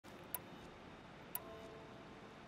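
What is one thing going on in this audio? A soft menu tick sounds twice.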